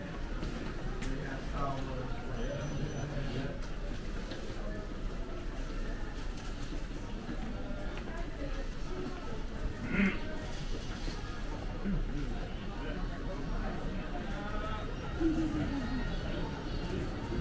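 Indoor crowd chatter and murmuring voices fill a busy space.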